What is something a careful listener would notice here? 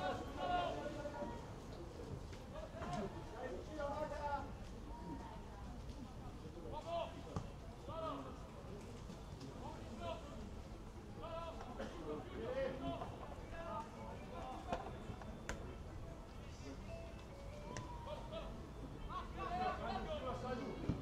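Men shout to each other across an open field outdoors.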